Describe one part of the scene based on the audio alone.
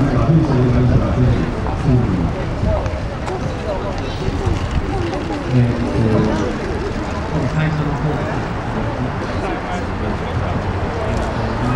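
A crowd of men and women chatters nearby, many voices overlapping.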